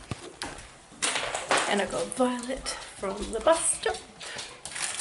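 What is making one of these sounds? A young woman speaks quietly and with animation close to the microphone.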